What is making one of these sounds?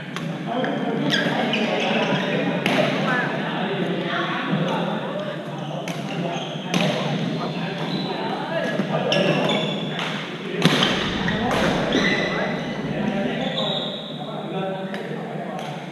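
Young men call out to one another in a large echoing hall.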